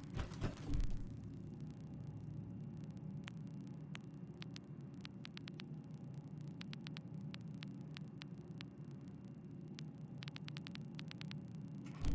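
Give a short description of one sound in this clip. Soft menu clicks tick as items are picked.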